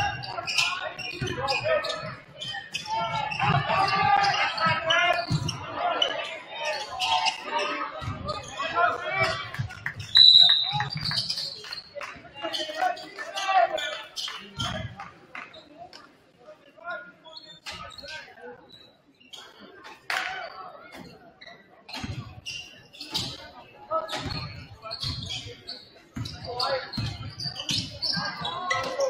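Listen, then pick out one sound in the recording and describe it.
A crowd cheers and chatters in a large echoing gym.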